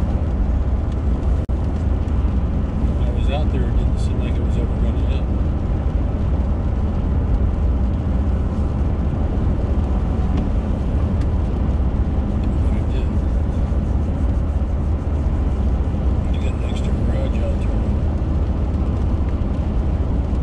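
Raindrops patter lightly on a windshield.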